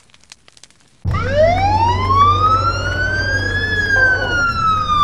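A siren wails, rising and falling.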